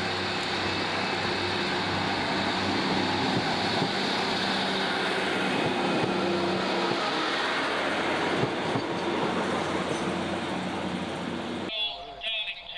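A passenger train rumbles along the track as it pulls away.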